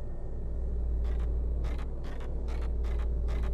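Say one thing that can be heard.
Footsteps tap on wooden boards.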